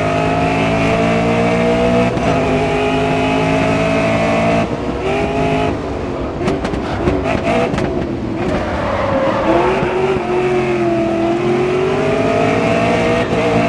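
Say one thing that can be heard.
A racing car engine roars at high revs, shifting gears and dropping in pitch as the car brakes, then rising again.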